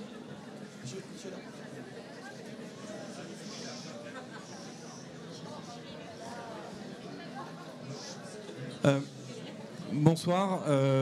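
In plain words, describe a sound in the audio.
A crowd murmurs quietly in a large room.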